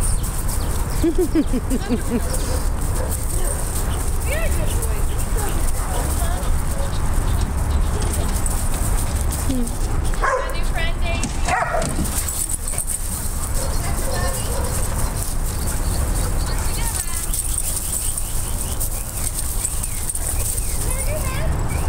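A dog pants heavily.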